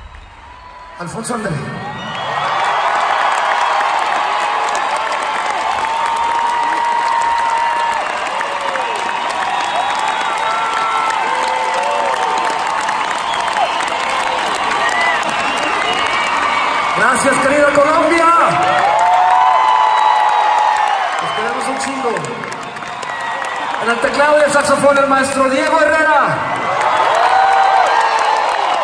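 A large crowd cheers and sings loudly in an echoing hall.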